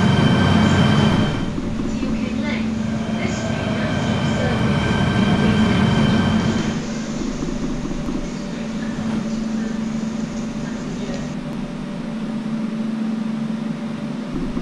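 A train rumbles along the tracks and slows to a stop.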